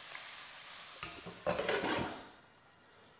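A metal pan scrapes and rattles on a stove.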